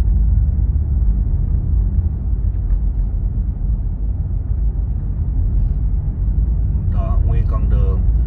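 Tyres rumble on an icy road.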